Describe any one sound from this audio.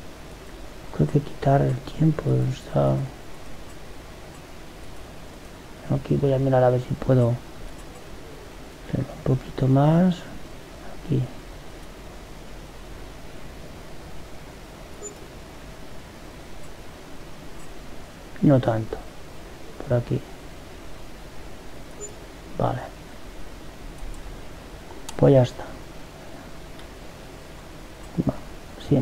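A man speaks in short bursts into a close microphone.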